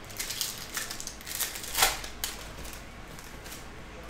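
Trading cards riffle and slap as hands shuffle through them.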